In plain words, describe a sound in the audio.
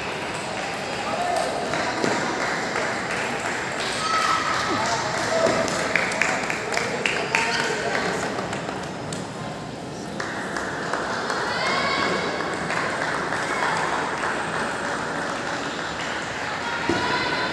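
Table tennis balls click sharply on paddles and tables in a large echoing hall.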